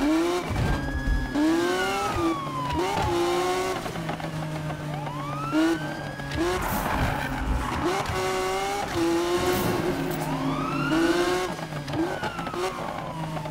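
A sports car engine revs hard, rising and dropping in pitch with each gear change.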